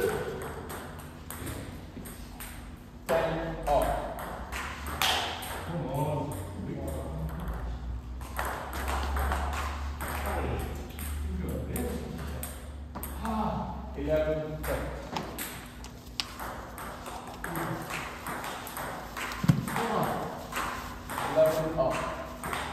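Table tennis balls tick on tables and bats in a large echoing hall.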